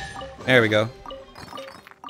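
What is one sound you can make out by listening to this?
A treasure chest opens with a bright chime.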